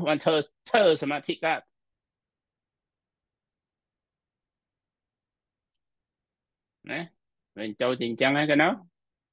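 A middle-aged man speaks calmly over an online call, pausing between phrases.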